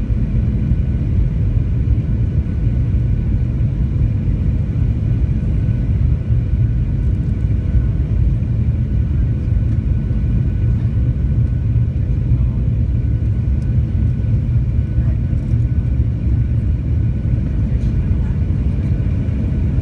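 A small plane's propeller engine drones loudly and steadily from inside the cabin.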